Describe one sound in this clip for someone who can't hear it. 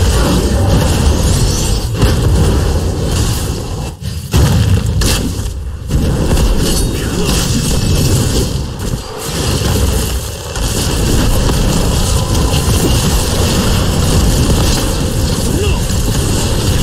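Spell blasts and weapon hits clash in a busy game battle.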